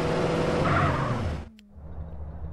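A car engine runs and then cuts off.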